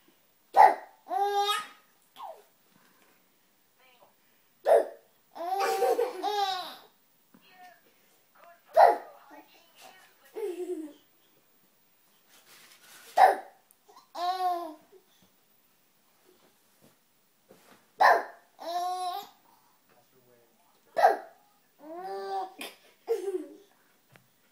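A baby laughs in bursts of delighted giggles close by.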